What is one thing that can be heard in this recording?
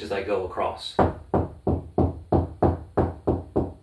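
A man knocks on a wall with his knuckles, in an even rhythm.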